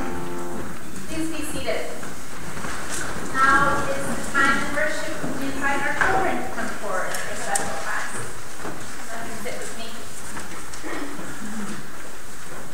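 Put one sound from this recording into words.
A woman speaks calmly from a distance in a large echoing hall.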